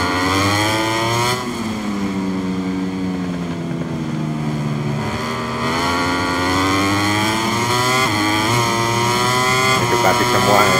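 A motorcycle engine revs high, its pitch dropping and rising through gear changes.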